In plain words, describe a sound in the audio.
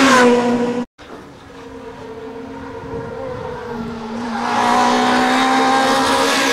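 A rally car engine grows louder as it approaches, then revs hard close by.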